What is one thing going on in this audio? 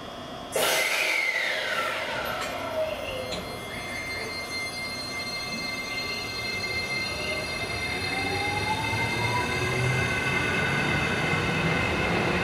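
A train's electric motors whine, rising and falling in pitch.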